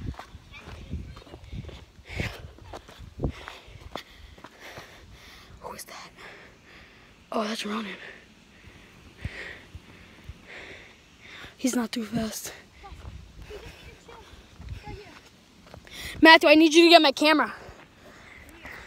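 Footsteps scuff and crunch on loose dirt.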